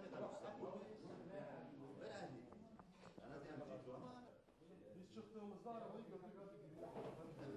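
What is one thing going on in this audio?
Several men talk and chat with one another.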